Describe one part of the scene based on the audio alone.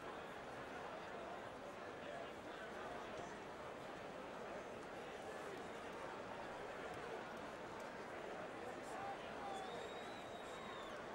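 A crowd roars steadily in a large echoing arena.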